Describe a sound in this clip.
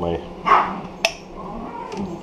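A ceramic bowl is set down on a small scale with a light knock.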